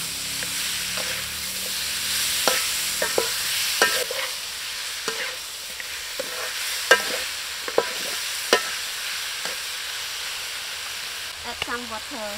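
Food sizzles and fries in a hot pan.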